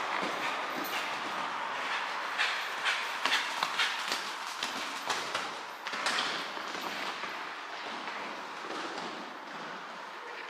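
A horse canters with soft thuds of hooves on sand in a large echoing hall.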